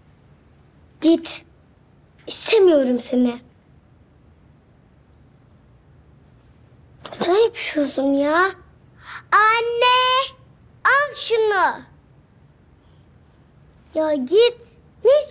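A young girl speaks close by in a pleading, upset voice.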